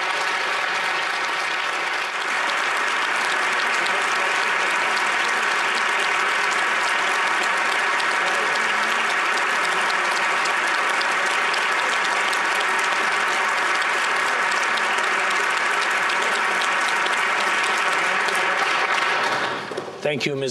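A large crowd applauds loudly and steadily in a large hall.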